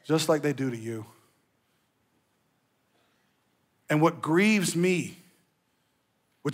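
A man speaks calmly and expressively through a microphone, with pauses.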